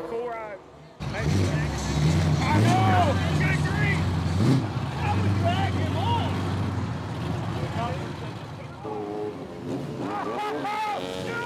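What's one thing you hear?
Car engines rumble loudly as cars cruise past.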